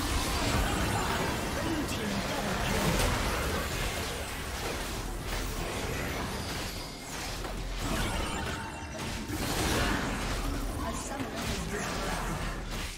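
Magic spells whoosh and crackle in a busy game battle.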